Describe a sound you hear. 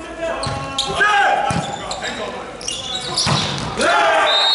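A volleyball is struck hard, with sharp slaps echoing in a large hall.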